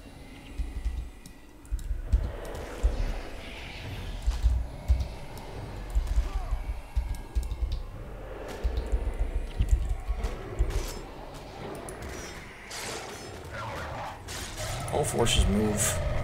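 A giant sandworm thuds against the ground in a game fight.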